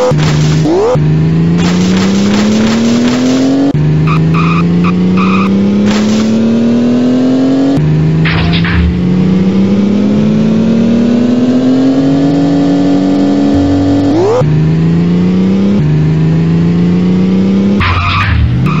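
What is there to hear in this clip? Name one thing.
A car engine revs up and shifts gears again and again.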